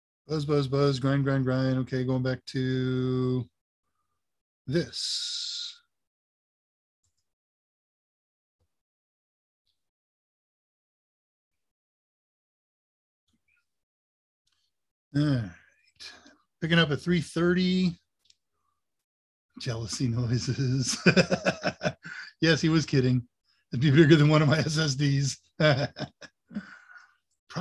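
An elderly man talks calmly over an online call, in bursts with pauses.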